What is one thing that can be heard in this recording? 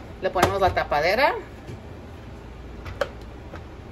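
A plastic lid clicks onto a container.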